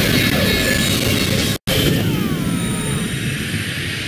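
A huge magic blast roars and crackles.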